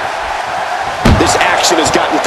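A guitar smashes against a body with a loud crack.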